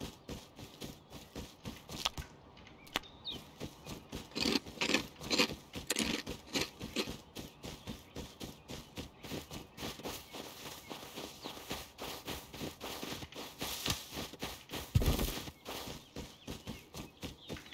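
Footsteps crunch quickly over snow and gravel.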